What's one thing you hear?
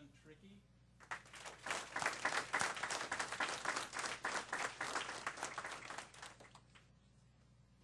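A small group applauds with steady clapping.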